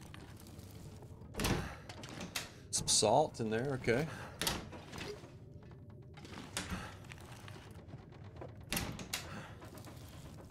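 Wooden cupboard doors creak and knock as they open.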